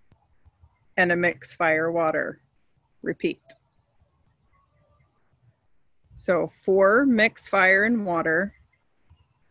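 A woman speaks calmly and clearly into a microphone, in short phrases with pauses.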